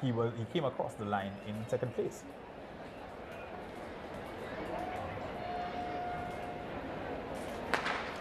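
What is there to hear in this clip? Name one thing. A large crowd murmurs in an open-air stadium.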